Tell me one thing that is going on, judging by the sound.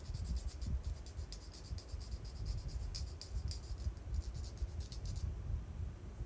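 A small plastic wrapper crinkles and clicks close by.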